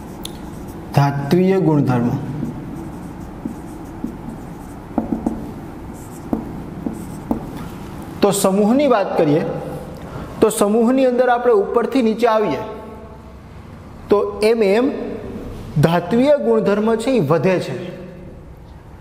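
A man speaks calmly to an audience through a clip-on microphone.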